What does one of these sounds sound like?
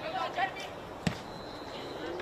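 A football thuds as it is kicked hard.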